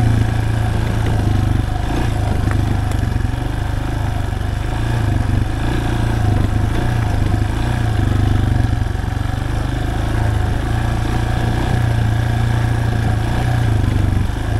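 A motorcycle engine chugs steadily at low speed.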